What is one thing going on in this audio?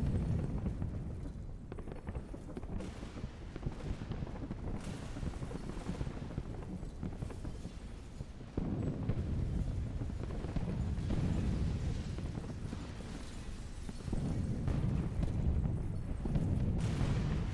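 Dancers' feet thud and shuffle on a stage.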